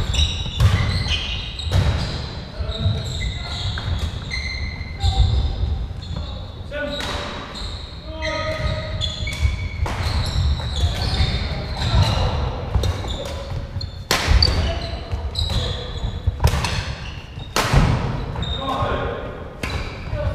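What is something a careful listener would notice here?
Shuttlecocks are struck with sharp pops of rackets in a large echoing hall.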